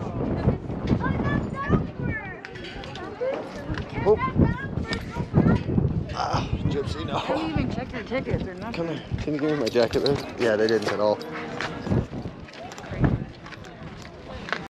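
A crowd of adults and children chatters nearby outdoors.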